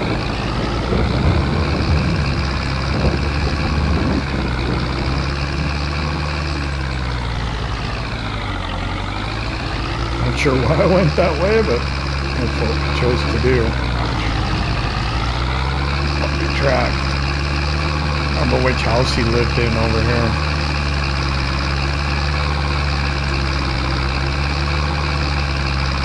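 A tractor engine rumbles steadily, dropping in pitch briefly as it slows and then picking up again.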